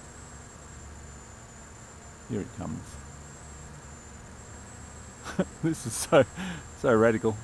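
A small drone's motors whine steadily.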